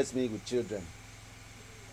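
An elderly man speaks in a low, grave voice.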